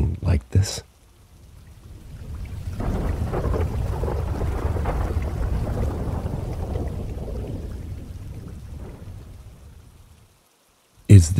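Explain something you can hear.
Heavy rain pours down outdoors.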